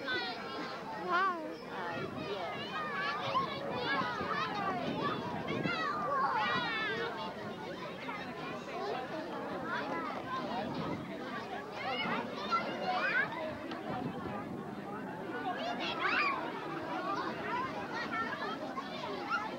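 Children shriek and call out with high voices.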